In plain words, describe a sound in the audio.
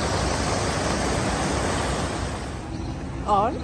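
Fountain water splashes and sprays steadily.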